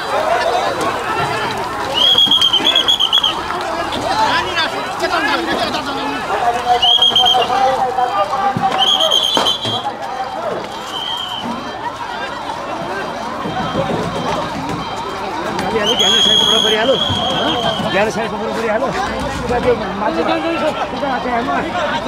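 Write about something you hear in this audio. A crowd of men shouts and talks excitedly outdoors.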